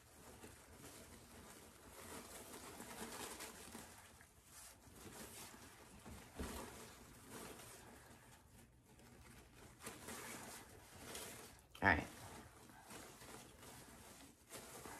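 Stiff ribbon loops rustle and crinkle as hands shape a bow.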